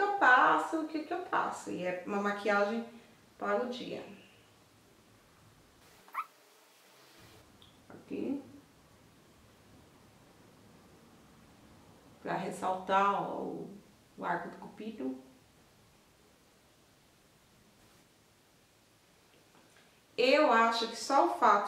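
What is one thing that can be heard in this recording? A woman talks calmly and close by, in bursts with pauses.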